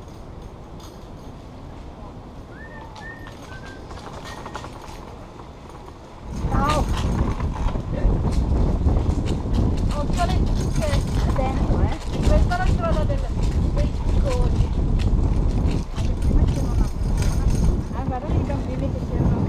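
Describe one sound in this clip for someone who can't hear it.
Bicycle tyres roll over a paved path.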